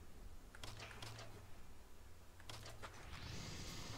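Menu clicks tick sharply.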